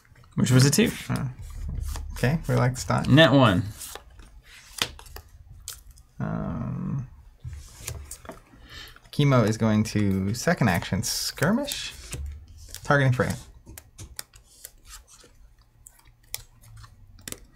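Game pieces and cards click and tap on a table.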